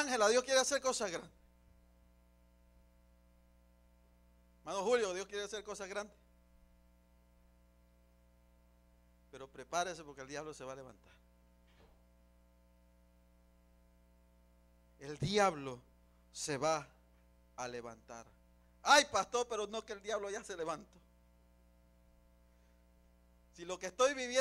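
A man preaches with animation through a microphone, in bursts with long pauses.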